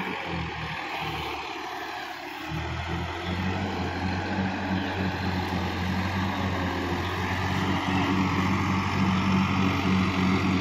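A tractor engine chugs steadily, growing louder.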